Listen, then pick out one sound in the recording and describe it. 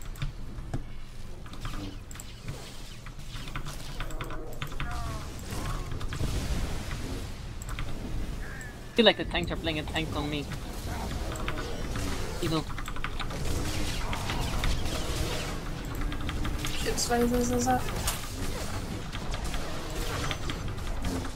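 Video game combat effects zap, crackle and blast.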